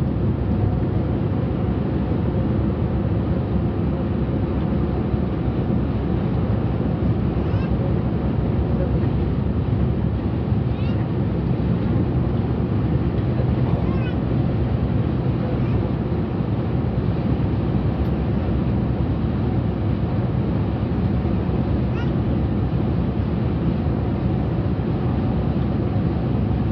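A vehicle's engine hums steadily.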